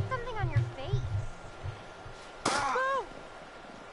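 A snowball thuds against a face.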